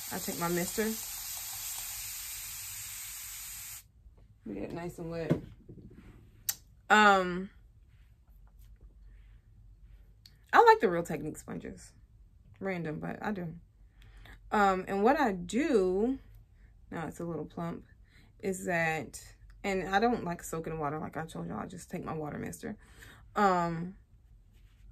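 A young woman talks calmly and close to a microphone, in short phrases with pauses.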